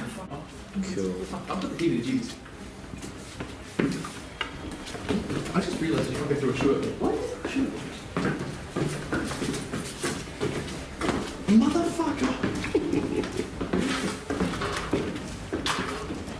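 Footsteps tread up wooden stairs.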